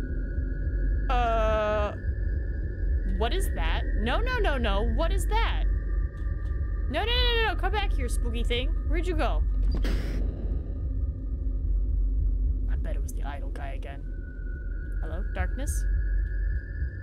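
A young woman talks quietly into a nearby microphone.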